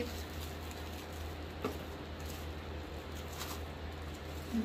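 Plastic wrapping rustles as it is handled.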